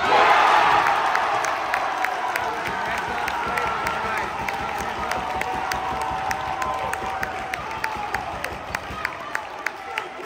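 Spectators clap their hands in rhythm.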